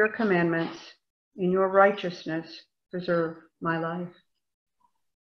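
An elderly woman speaks calmly over an online call.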